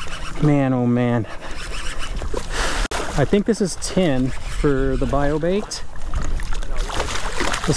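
A fish splashes and thrashes in the water.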